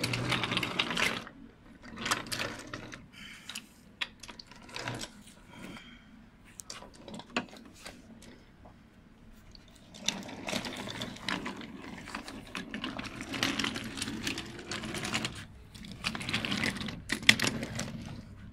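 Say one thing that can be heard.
Wooden toy train cars clatter and click along a wooden track.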